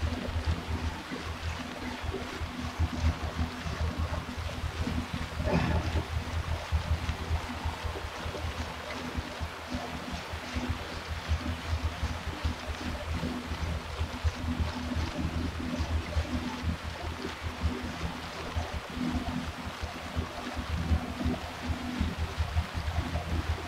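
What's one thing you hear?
An indoor bike trainer whirs steadily under pedalling.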